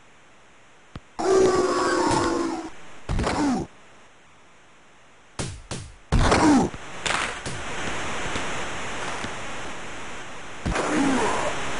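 A hockey puck clacks off sticks.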